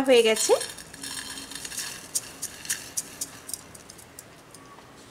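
Small dry grains pour and patter onto a plate.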